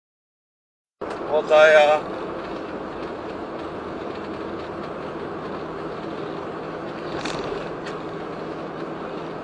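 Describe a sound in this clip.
Tyres hum on a highway from inside a car.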